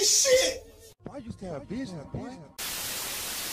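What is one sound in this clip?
A man speaks.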